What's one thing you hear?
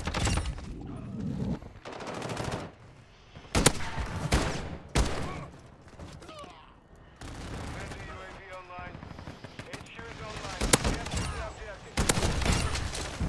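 Gunfire rattles in loud bursts.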